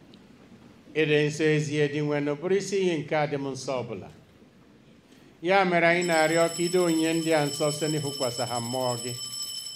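A man chants loudly into a microphone.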